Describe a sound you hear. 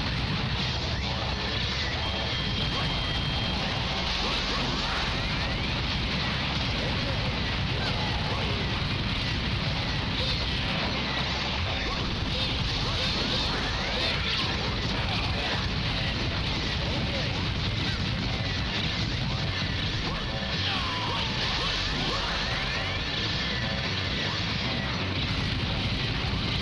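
Video game gunfire and explosions crackle.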